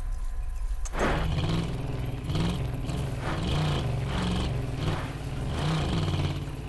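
A car engine hums and revs as it drives over rough ground.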